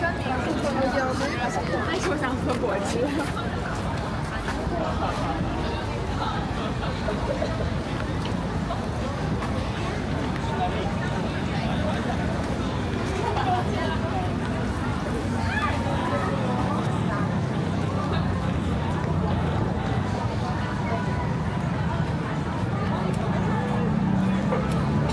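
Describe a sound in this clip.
Footsteps tap on paving stones close by.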